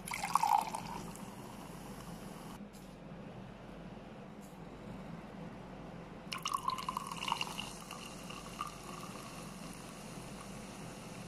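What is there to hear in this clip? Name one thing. Bubbles fizz softly in a glass.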